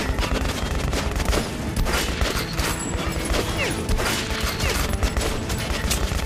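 Rifle shots crack repeatedly.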